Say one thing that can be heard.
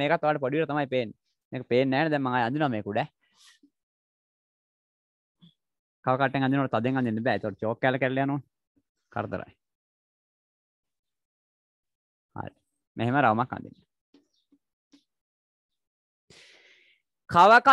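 A young man speaks calmly nearby, explaining.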